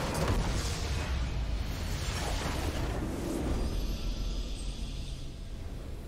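A large structure explodes with a deep rumbling blast.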